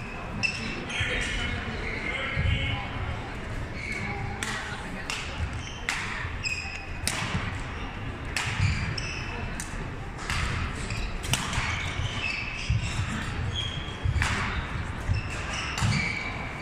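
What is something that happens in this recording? Shuttlecocks are struck with rackets in quick sharp pops.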